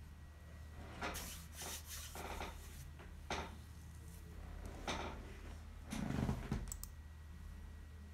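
A man speaks softly and close by, now and then.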